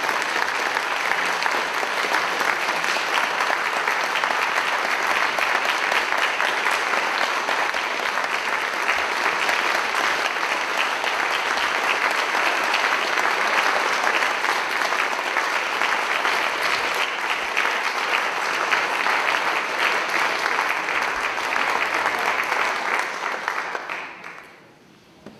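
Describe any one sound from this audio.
A large crowd applauds loudly in an echoing hall.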